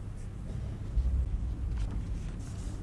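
Boots stamp on the floor.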